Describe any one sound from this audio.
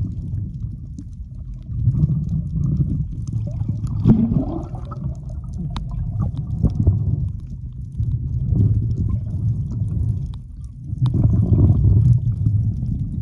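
Small bubbles click and crackle underwater.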